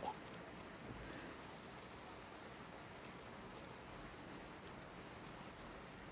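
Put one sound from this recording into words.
Leaves rustle as someone pushes through bushes.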